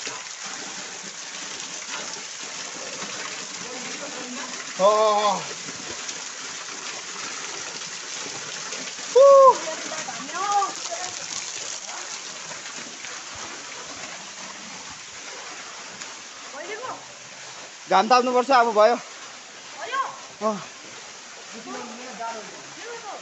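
Falling water splashes and hisses steadily.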